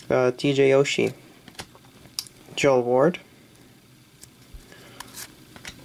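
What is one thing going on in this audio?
Trading cards slide and rustle softly between fingers.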